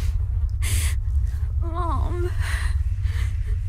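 A young woman speaks softly and shakily, close by.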